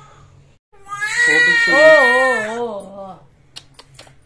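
A baby cries loudly up close.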